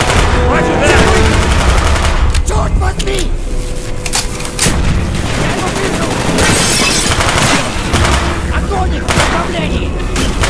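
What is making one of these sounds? Rapid gunfire bursts ring out close by.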